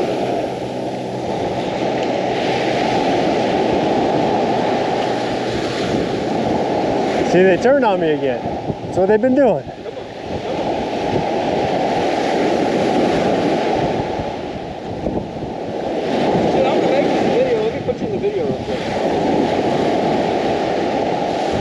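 Wind blusters steadily into the microphone outdoors.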